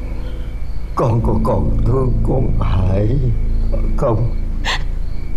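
A middle-aged man groans and speaks in a strained, pained voice close by.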